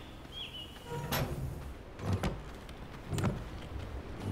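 Heavy doors swing open with a deep thud.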